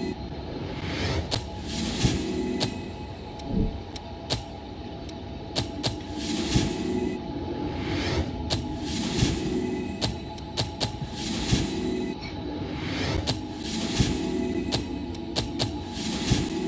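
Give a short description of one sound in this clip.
Short menu clicks and chimes sound as options are picked.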